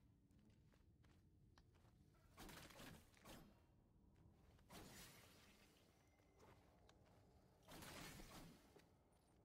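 Sword slashes whoosh and strike in quick bursts.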